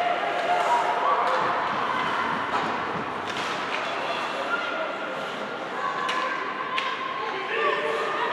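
Hockey sticks clack against the ice and puck.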